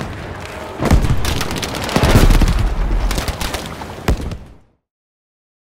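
A rifle fires loud shots in quick bursts.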